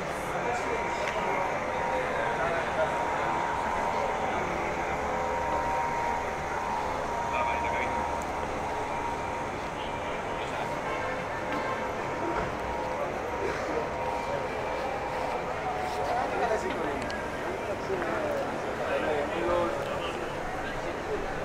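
A crowd of men and women murmurs and chatters at a distance in a wide open outdoor space.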